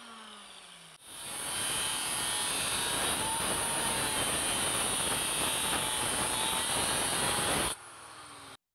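An electric saw cuts loudly into wood.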